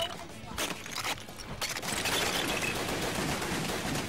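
Ice shatters with a loud crash.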